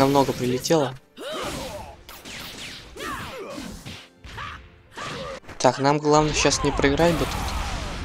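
Fighters' blows hit with sharp impacts.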